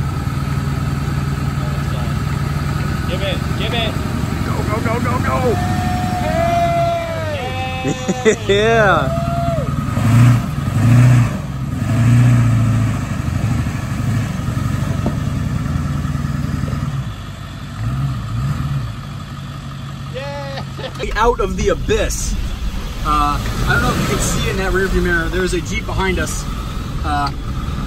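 A large truck engine rumbles and revs hard.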